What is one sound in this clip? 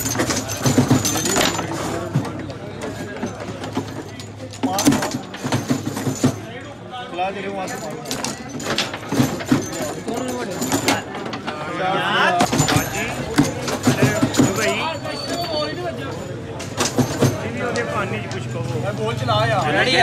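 Metal rods slide and rattle as players spin them.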